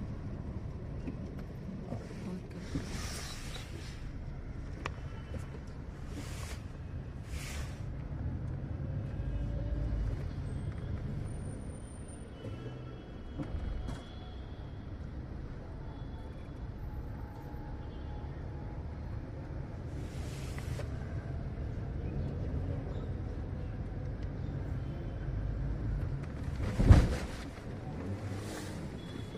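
A car engine hums steadily from inside the cabin as the car rolls slowly.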